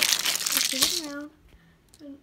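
A plastic water bottle crinkles and rustles as a hand grips it close by.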